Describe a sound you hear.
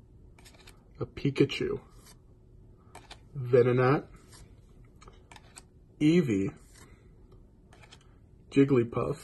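Stiff cards rustle and slide against each other as a hand flips through them.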